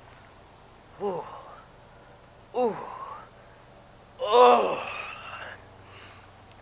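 A young woman cries out in sharp, rising yelps close by.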